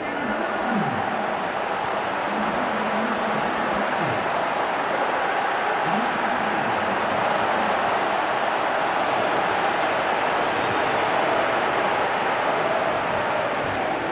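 A large stadium crowd roars.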